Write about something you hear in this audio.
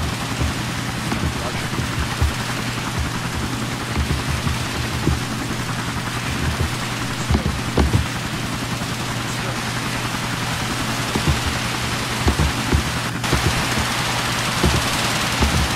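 Water hisses from a fire hose spraying hard and steadily.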